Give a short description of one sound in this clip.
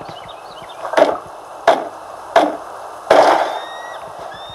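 A few loud, heavy knocks sound in quick succession.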